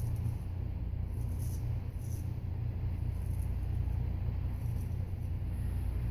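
A razor scrapes across stubble.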